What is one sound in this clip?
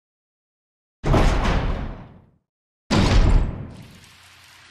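A heavy metal double door creaks and clanks open.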